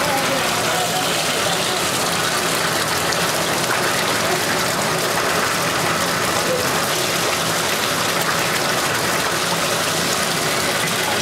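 Water splashes softly.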